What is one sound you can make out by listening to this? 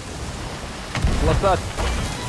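A cannon fires with a deep boom.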